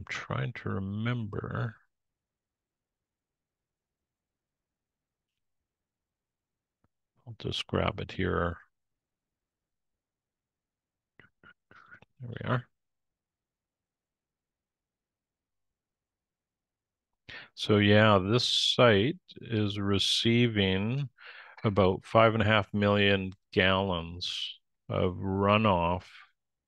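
A man talks calmly over an online call, with pauses.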